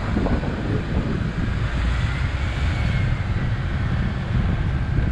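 A small truck's engine hums as it drives past close by.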